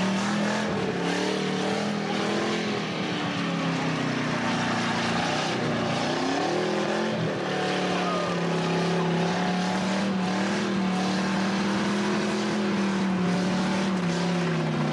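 Tyres screech and squeal as they spin on the pavement.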